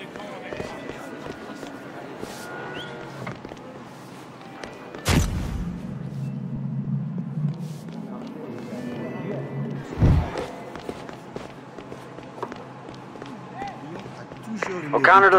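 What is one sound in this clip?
Footsteps run quickly over hard pavement.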